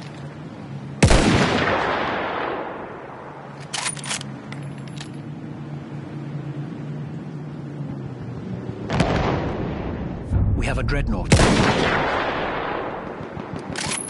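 A rifle fires a loud shot that booms and echoes away.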